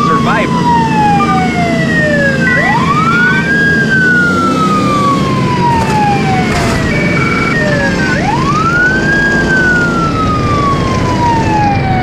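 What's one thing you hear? A siren wails, rising and falling slowly.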